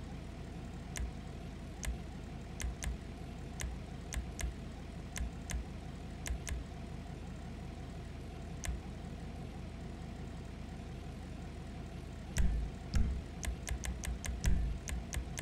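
Short menu ticks sound as selections change, in quick bursts toward the end.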